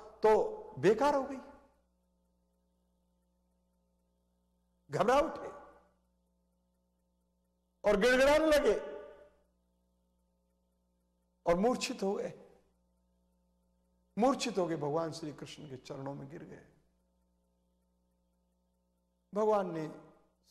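An elderly man speaks slowly and calmly into a microphone, in short phrases with long pauses.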